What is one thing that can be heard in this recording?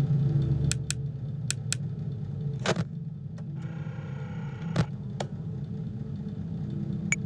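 A desk fan hums steadily.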